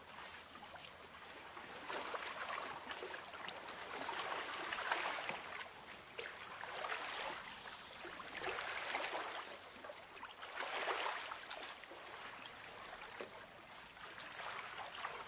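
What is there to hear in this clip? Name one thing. Paper pages rustle and swish as they are turned.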